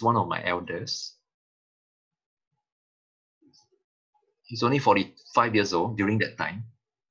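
A man talks calmly into a microphone, pausing between phrases.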